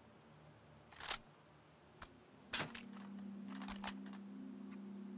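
A rifle magazine clicks and clacks into place.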